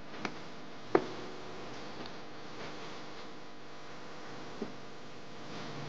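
Footsteps tread softly on stone steps outdoors.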